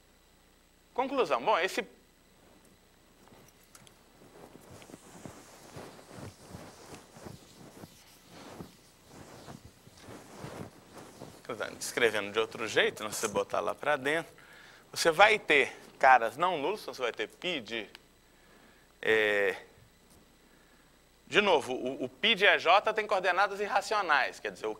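A man lectures nearby, speaking steadily in bursts with pauses.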